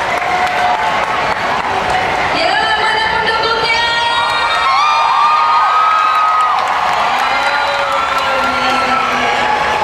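A large crowd cheers and whoops in a big echoing hall.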